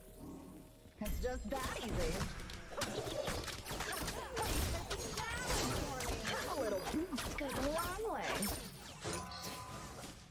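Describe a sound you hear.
Game spells and hits crackle and clash in a fast fight.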